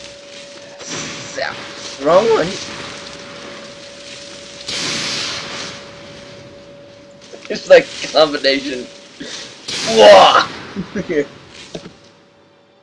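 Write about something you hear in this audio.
Electric sparks crackle and buzz.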